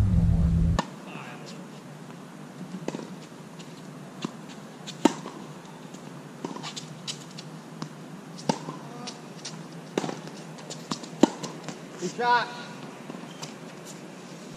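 Tennis balls are struck by rackets with sharp pops.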